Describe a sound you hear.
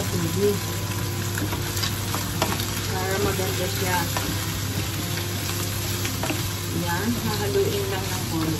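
A wooden spatula scrapes and knocks against a frying pan.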